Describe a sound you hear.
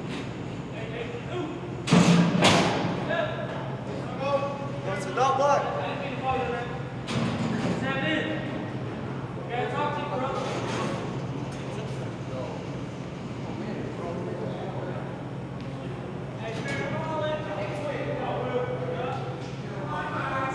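Men's voices talk and echo in a large, hard-walled hall.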